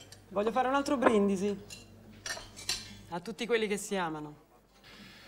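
A woman speaks up to propose a toast.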